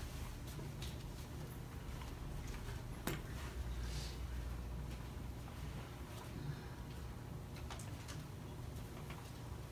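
Footsteps shuffle across a carpeted floor.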